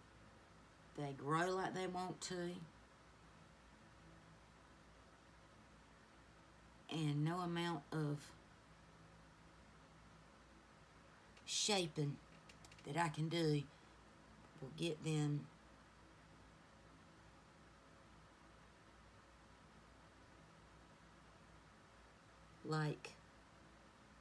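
A woman speaks calmly and close by, in short phrases with long pauses.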